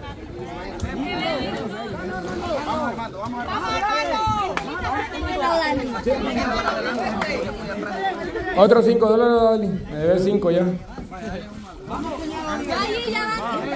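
Water splashes as young people struggle with an inflatable kayak.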